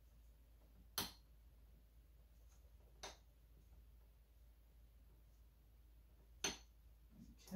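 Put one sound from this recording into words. Small plastic parts click and knock as a computer part is screwed in.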